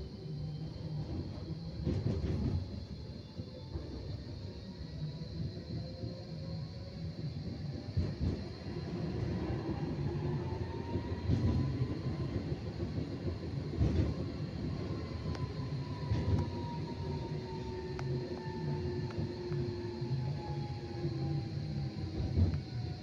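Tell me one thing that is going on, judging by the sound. A tram rumbles steadily along its rails.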